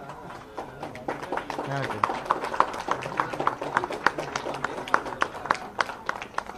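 A small group of people claps their hands.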